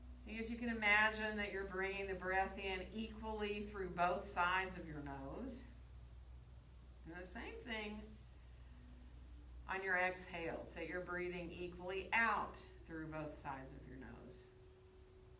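A young woman speaks calmly and slowly, close by.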